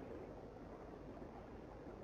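Bubbles rise and gurgle underwater.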